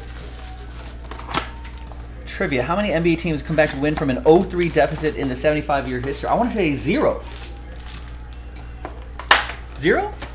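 Cardboard card boxes knock and rustle as they are handled.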